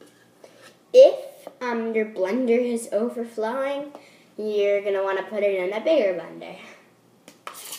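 A young girl talks calmly close by.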